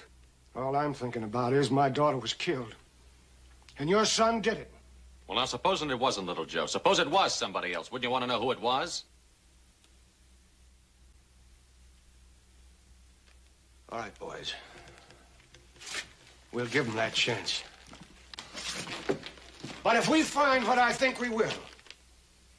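Men speak calmly nearby, trading lines.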